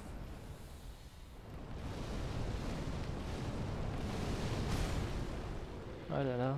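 Fireballs roar and whoosh through the air.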